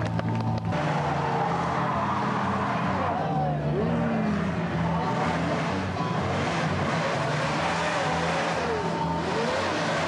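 A car engine roars loudly.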